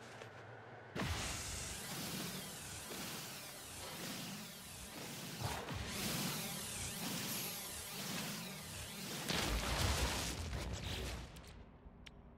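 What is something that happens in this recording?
A laser beam hums and crackles steadily as it cuts into rock.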